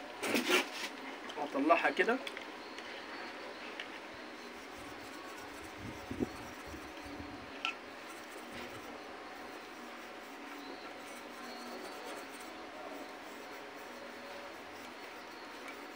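A metal spoon scrapes and clinks against a cup.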